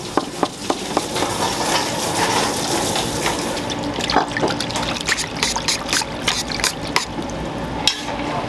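Water splashes and swishes in a metal tray.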